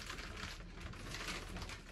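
A man rustles and shifts cardboard boxes nearby.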